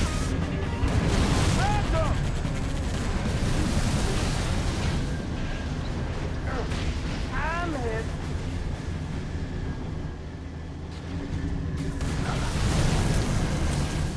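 A heavy vehicle engine rumbles steadily.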